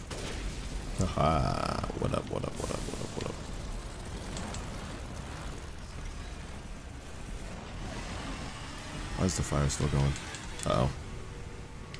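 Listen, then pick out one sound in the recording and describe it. A young man talks with animation into a headset microphone.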